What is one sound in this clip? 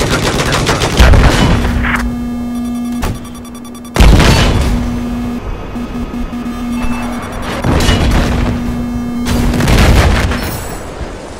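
A tank cannon fires with heavy booming blasts.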